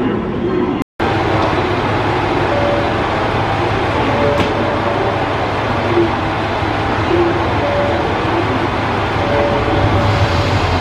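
A train idles with a low, steady hum.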